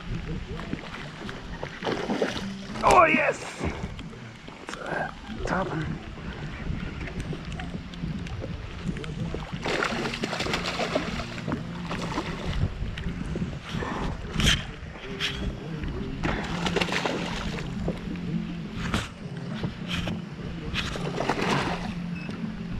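A hooked fish splashes at the water's surface.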